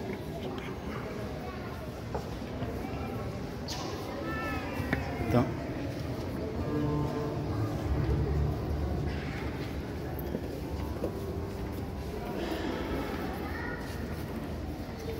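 A crowd of men and women murmurs and chats in a room with some echo.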